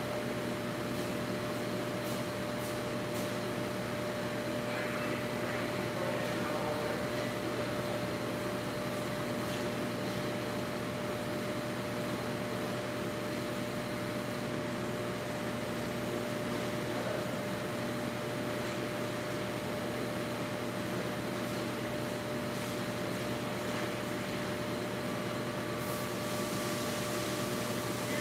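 A pressure washer sprays water steadily in a large echoing hall.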